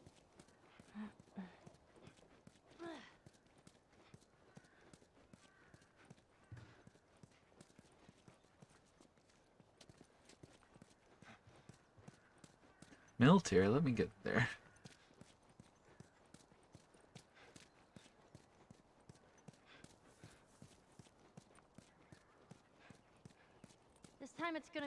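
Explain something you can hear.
Footsteps tap steadily on pavement.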